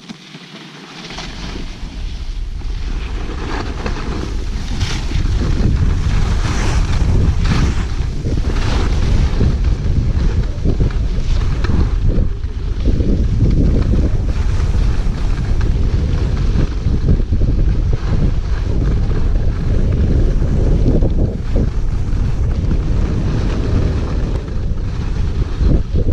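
Wind rushes loudly past, growing stronger.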